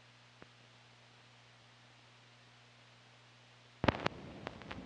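A low electrical hum drones steadily.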